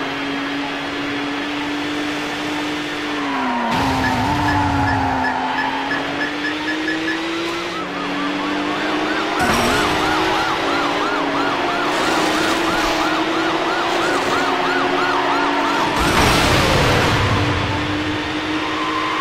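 A race car engine drones steadily at high speed, dipping briefly as gears change.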